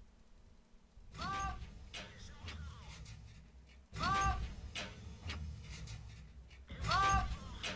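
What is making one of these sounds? A tank cannon fires with a loud boom and a ringing echo.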